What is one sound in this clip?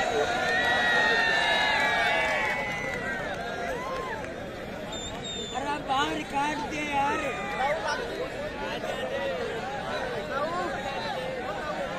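A large outdoor crowd shouts and cheers in a steady din.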